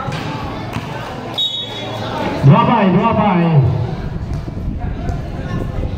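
A crowd murmurs and chatters in an open echoing space.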